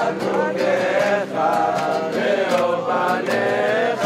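An acoustic guitar strums along.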